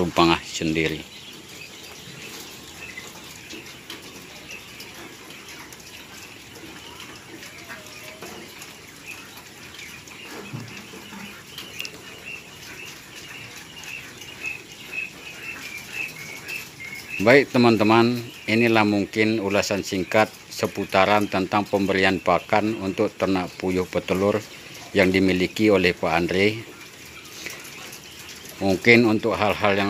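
Small caged birds chirp softly and steadily.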